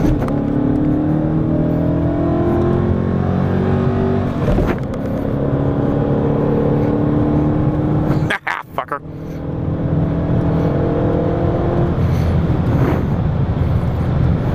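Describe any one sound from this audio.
A car engine roars loudly as it accelerates through the gears.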